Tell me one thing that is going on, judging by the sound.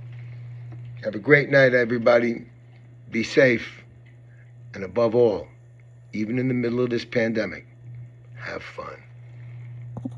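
A middle-aged man speaks calmly and close up, in short bursts with pauses.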